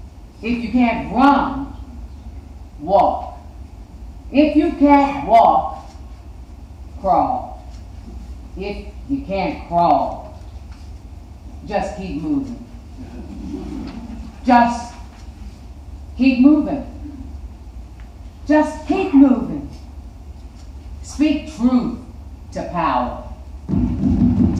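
A woman reads aloud with slow, expressive pauses through a microphone in a large echoing hall.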